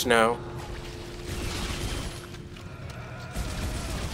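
A futuristic energy weapon fires shots.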